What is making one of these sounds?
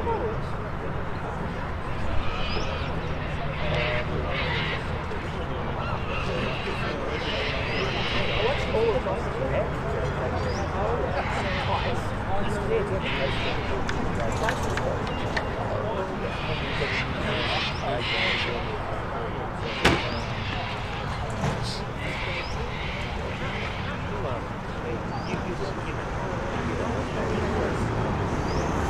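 Men talk and call out at a distance across an open field.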